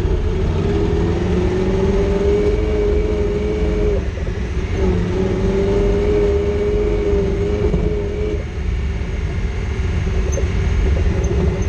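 An engine hums steadily and rises and falls in pitch as an off-road vehicle drives.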